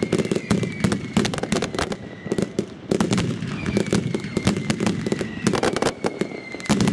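Fireworks crackle and bang rapidly outdoors.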